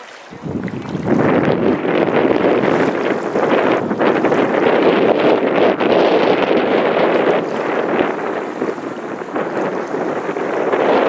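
Water rushes and splashes steadily.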